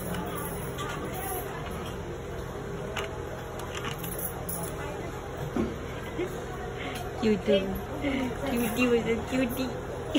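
A plastic basket lid knocks and rattles as a rabbit pushes it open.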